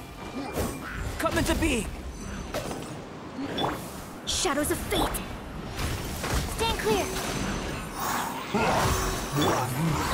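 Magic blasts burst and crackle loudly.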